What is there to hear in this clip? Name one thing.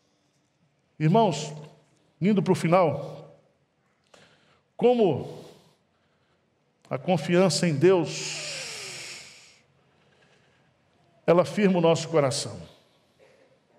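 A middle-aged man speaks slowly and solemnly into a microphone, with long pauses, in a reverberant hall.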